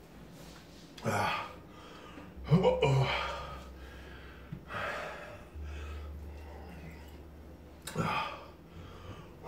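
A man groans and cries out loudly nearby.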